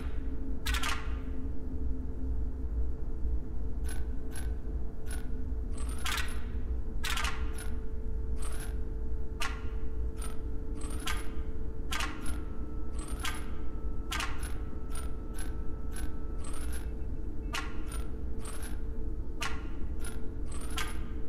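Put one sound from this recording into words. Puzzle tiles slide and click into place again and again, with short swishing chimes.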